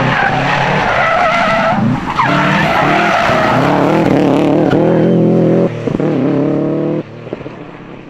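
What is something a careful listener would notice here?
A rally car engine revs hard and roars past, shifting gears.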